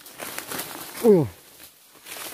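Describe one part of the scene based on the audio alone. A man calls out briefly nearby.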